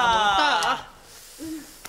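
A woman shouts in a high, strained voice nearby.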